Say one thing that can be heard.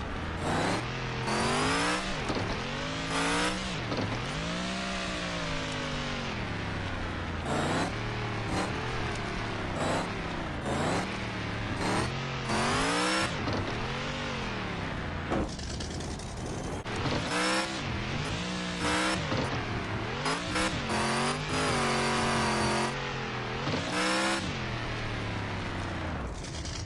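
A truck engine revs up and down as it climbs over rough ground.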